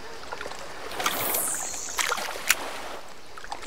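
A fishing rod swishes as a line is cast out.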